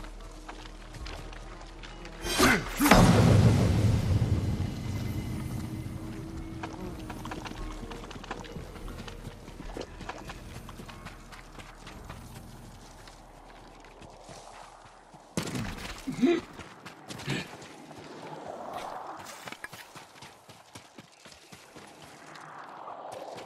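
Footsteps splash and rustle through wet grass.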